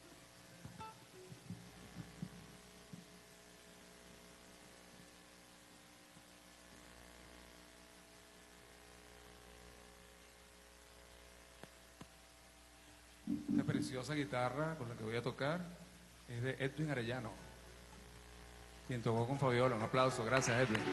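A band plays soft music on a stage.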